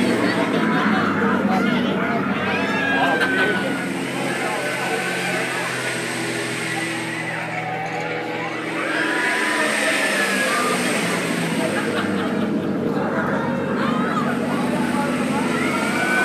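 A ride's machinery hums steadily.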